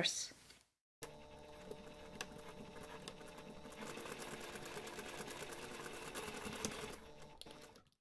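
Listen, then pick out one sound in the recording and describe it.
A sewing machine runs steadily, stitching with a quick rattling hum.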